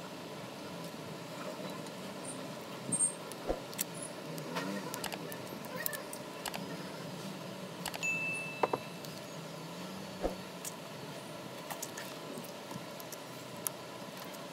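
Fingers tap and click against a phone's plastic casing.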